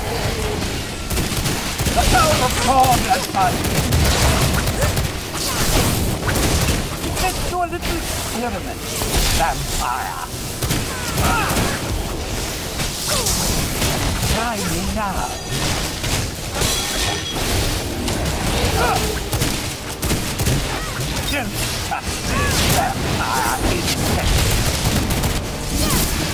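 Electric spells crackle and zap in quick bursts.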